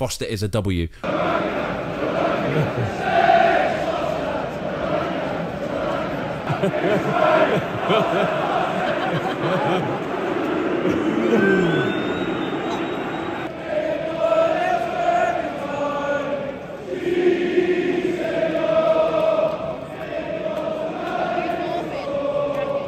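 A large stadium crowd roars and cheers outdoors.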